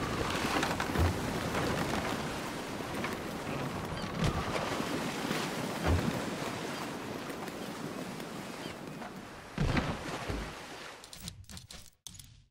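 Waves splash and rush around a sailing boat.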